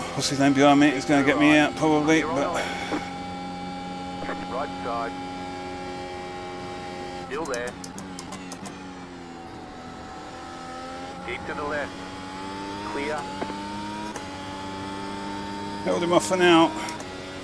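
A racing car engine whines steadily, shifting up and down through the gears.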